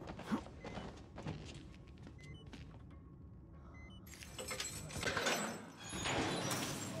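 A metal gate rattles and clanks as it is pushed.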